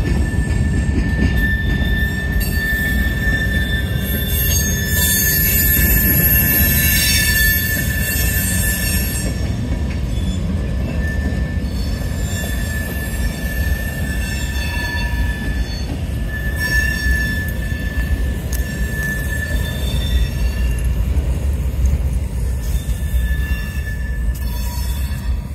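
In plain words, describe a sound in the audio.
Steel wheels squeal on the rails.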